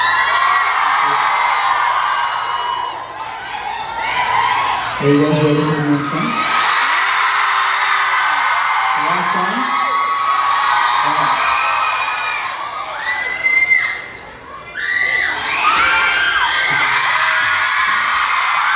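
A crowd of young fans screams and cheers loudly.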